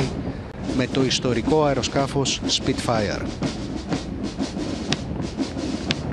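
A large crowd claps outdoors.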